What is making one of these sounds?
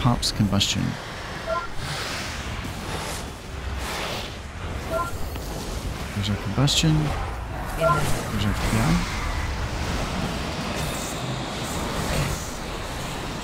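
Spells crackle and explode in a fast game battle.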